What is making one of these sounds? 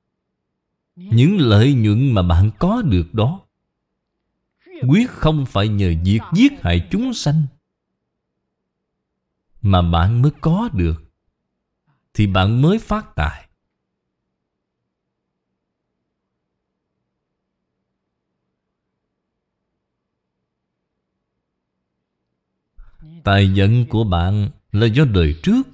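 An elderly man speaks calmly and slowly into a close microphone, pausing between phrases.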